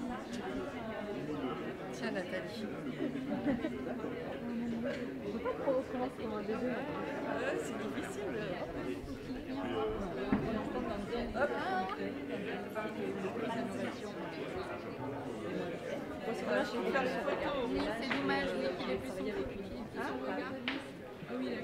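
A crowd of people chatter all around at close range.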